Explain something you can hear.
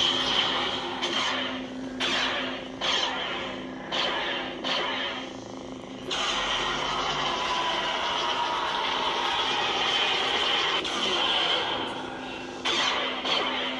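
A toy lightsaber hums steadily and whooshes with swings.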